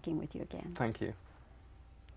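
A man speaks briefly and calmly.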